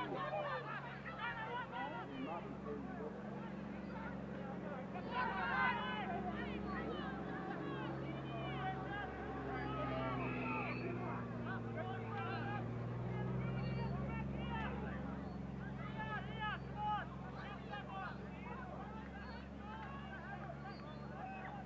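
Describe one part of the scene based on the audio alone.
Players call out to one another on the field.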